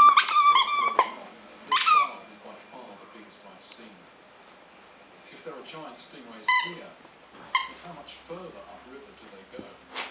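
A puppy gnaws and chews on a rubber ball.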